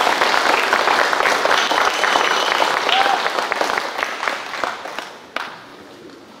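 An orchestra plays in a large echoing hall.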